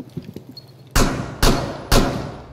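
Three loud gunshots ring out in quick succession.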